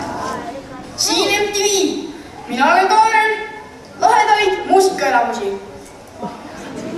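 A boy sings into a microphone.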